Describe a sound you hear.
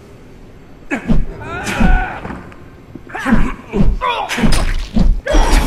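Heavy blows thud as a fighter strikes with a club.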